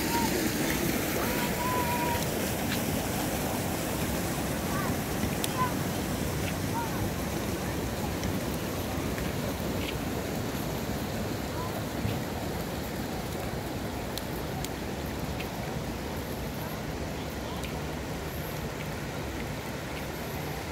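A small child's footsteps patter on pavement.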